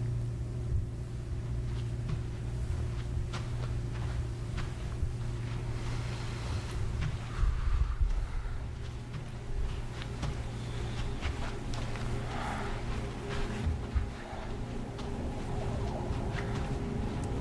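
A young man talks casually close to a microphone.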